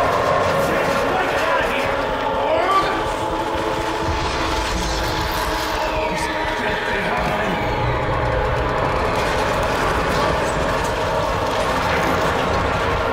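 A swirling vortex roars with a deep rumble.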